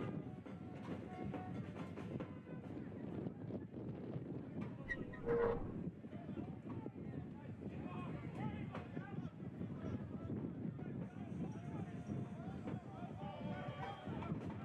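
A crowd of spectators chatters and calls out outdoors.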